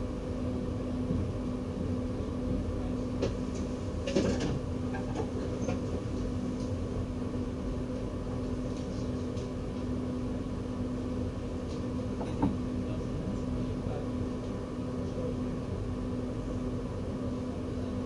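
A level crossing bell rings steadily in the distance.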